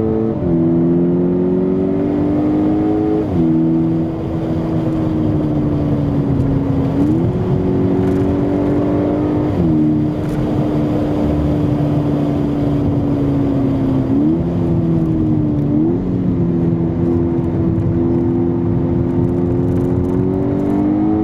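A car engine roars loudly from inside the cabin, shifting gears and revving up and down.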